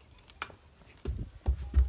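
Fabric rustles and bumps against the microphone up close.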